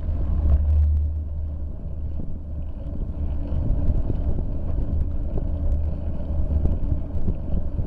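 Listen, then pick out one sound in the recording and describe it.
Tyres rumble and knock over rough pavement.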